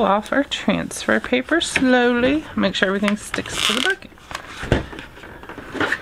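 Transfer tape peels off a plastic surface with a crackle.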